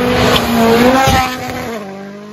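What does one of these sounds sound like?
A car thuds down onto gravel after a jump.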